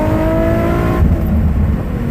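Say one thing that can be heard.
A car engine's pitch drops suddenly as the gear shifts.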